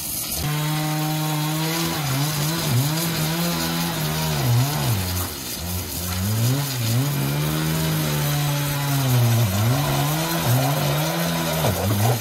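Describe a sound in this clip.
A pressure washer sprays water hard against wood with a steady hiss.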